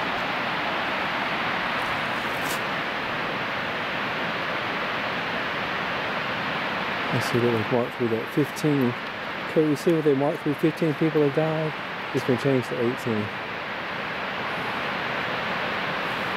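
A waterfall roars steadily in the distance.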